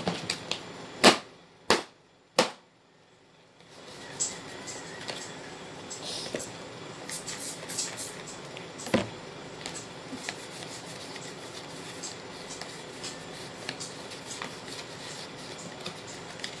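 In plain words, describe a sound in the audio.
A plastic tray clatters and knocks as it is handled.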